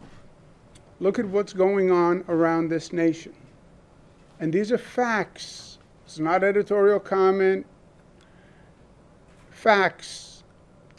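A middle-aged man speaks calmly into a microphone, in short bursts with pauses.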